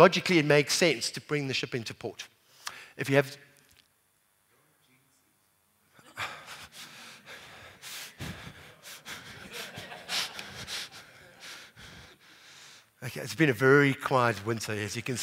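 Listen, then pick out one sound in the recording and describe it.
A man speaks calmly into a microphone, giving a talk.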